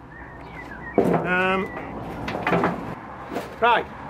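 Soil tips out of a plastic pot into a metal wheelbarrow.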